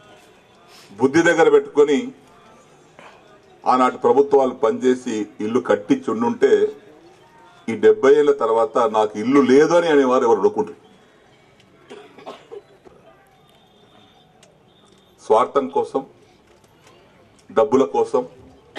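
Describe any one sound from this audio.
A middle-aged man speaks forcefully into a microphone over a loudspeaker, in bursts with pauses.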